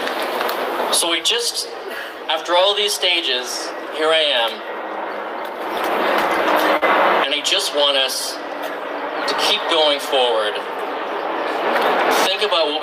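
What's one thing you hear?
A man speaks with animation through a loudspeaker outdoors.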